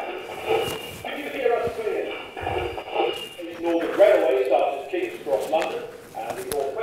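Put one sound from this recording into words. A man speaks animatedly into a microphone, heard over loudspeakers in a hall.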